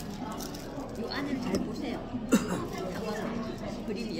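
Metal cutlery clinks on a table.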